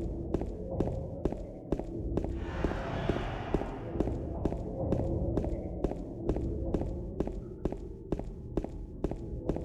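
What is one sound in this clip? Footsteps thud steadily on pavement, quickening into a run.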